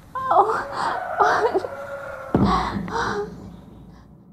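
A young woman whimpers and groans in pain close by.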